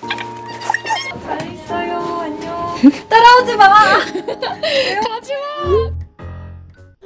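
A young woman laughs and speaks excitedly close by.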